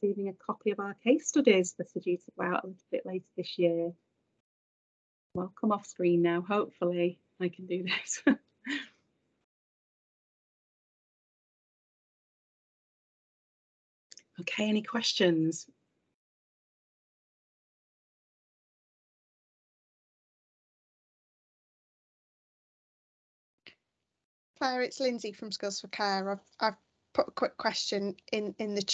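A woman speaks calmly over an online call, in short bursts with long pauses.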